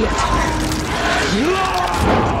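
A man shouts angrily close by.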